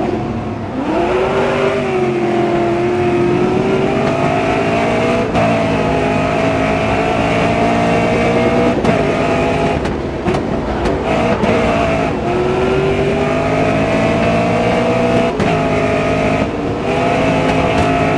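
A racing car engine roars loudly, rising in pitch as it speeds up and dropping with each gear change.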